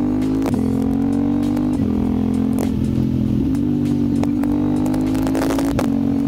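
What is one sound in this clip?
A motorcycle engine hums steadily at speed, its pitch dipping briefly with gear changes.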